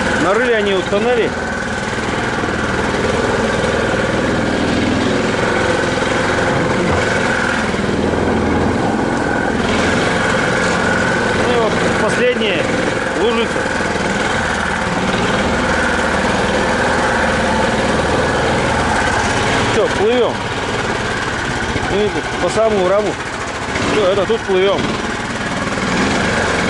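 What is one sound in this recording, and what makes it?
An engine drones steadily up close.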